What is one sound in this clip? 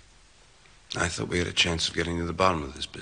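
A man speaks quietly, close by.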